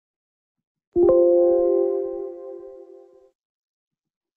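A computer warning chime sounds once and rings out.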